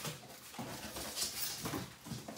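Paper rustles as it is pulled from a box.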